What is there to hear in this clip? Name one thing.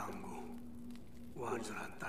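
A small campfire crackles.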